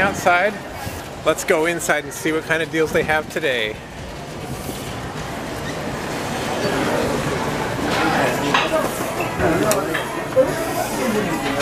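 A crowd of people chatters and murmurs indoors.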